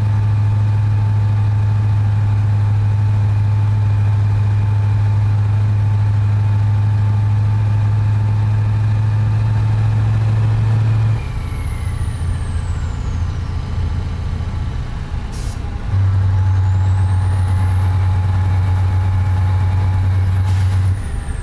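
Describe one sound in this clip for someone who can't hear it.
A truck engine drones steadily, easing off for a few seconds before droning again.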